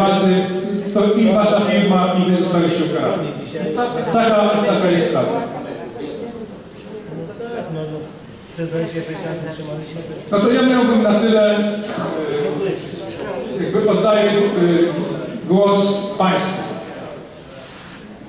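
A man speaks with animation into a microphone in a large echoing hall.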